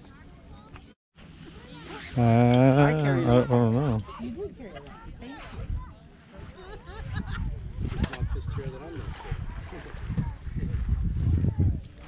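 Several people talk outdoors nearby.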